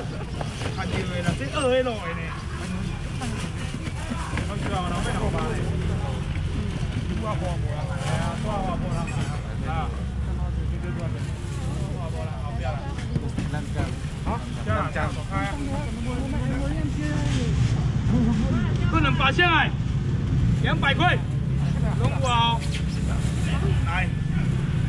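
A crowd murmurs nearby outdoors.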